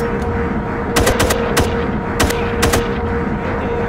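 A rifle fires a few loud gunshots in quick succession.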